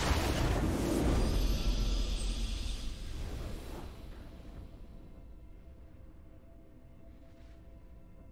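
A triumphant victory sound swells and slowly fades.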